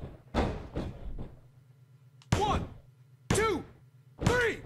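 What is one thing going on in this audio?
A referee slaps the mat three times as he counts a pin.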